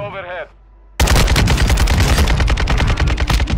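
Gunshots rattle in rapid bursts close by.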